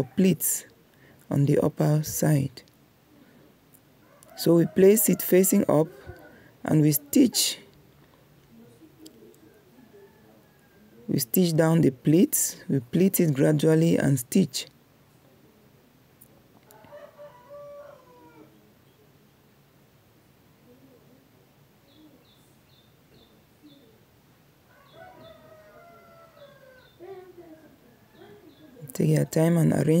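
A sewing machine runs in short, loud bursts.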